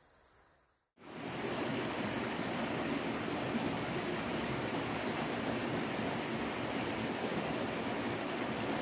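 A shallow stream splashes and babbles over rocks.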